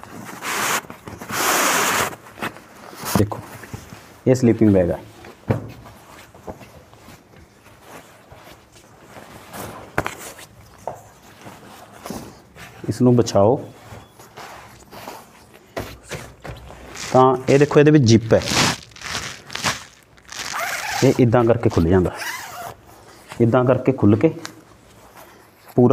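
Nylon fabric rustles and swishes as a sleeping bag is unpacked and spread out.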